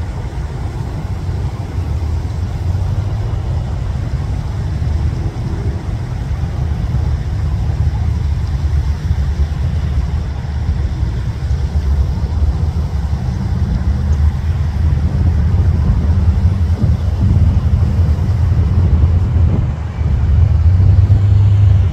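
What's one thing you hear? Classic hot rods rumble by in slow traffic in the distance.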